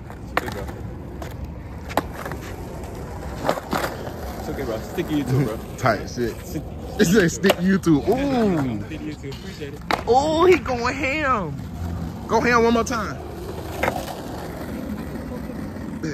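Skateboard wheels roll over rough asphalt.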